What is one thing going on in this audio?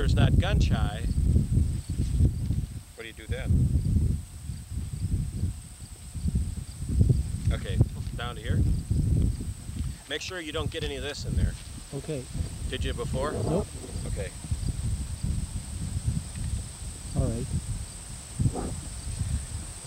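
A man speaks calmly and close by, outdoors.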